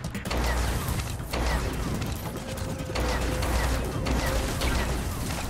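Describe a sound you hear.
Laser shots fire in rapid bursts.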